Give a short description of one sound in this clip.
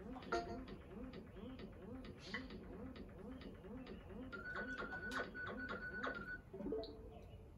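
Cheerful game music plays from a television.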